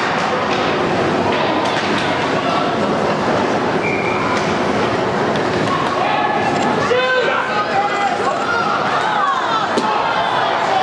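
A crowd of spectators murmurs and shouts in a large echoing rink.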